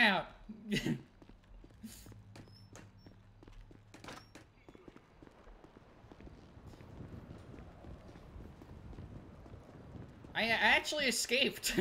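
Footsteps patter quickly on a hard floor and pavement.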